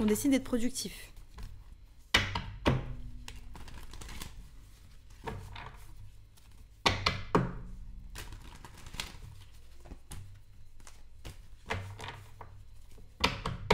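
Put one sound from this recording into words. Playing cards riffle and slap as a deck is shuffled.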